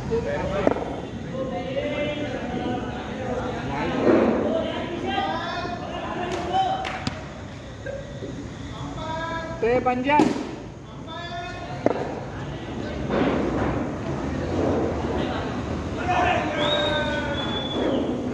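Men talk and call out to each other outdoors.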